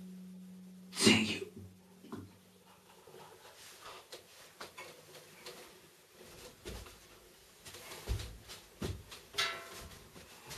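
An acoustic guitar body knocks and thumps as it is handled.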